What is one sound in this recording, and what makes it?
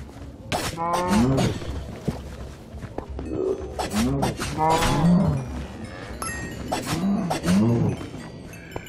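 Creatures cry out as they attack.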